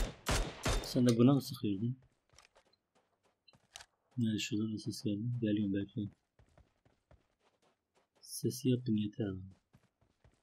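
A young man talks close to a microphone in short bursts.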